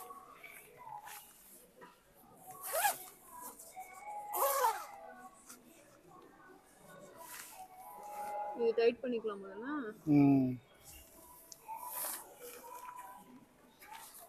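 A nylon rain jacket rustles as it is pulled on and adjusted.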